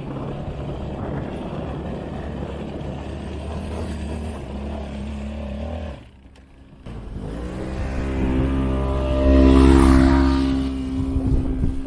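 A quad bike engine runs loudly close by, then revs higher.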